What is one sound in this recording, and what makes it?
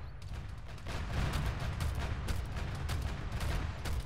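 A shell explodes nearby with a heavy boom.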